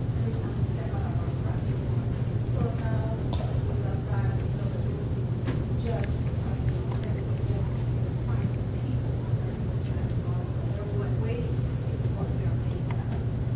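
An elderly man speaks calmly at a distance in a large echoing room.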